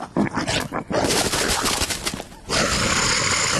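A lion roars loudly.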